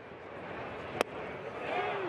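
A ball pops into a catcher's mitt.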